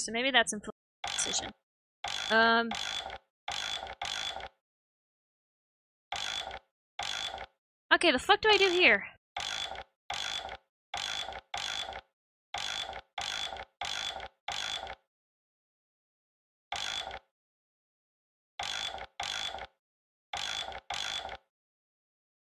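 A dial turns with repeated heavy clicks.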